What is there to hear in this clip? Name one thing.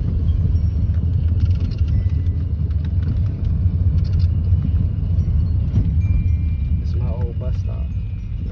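A car engine and tyres rumble low and steady from inside a moving car.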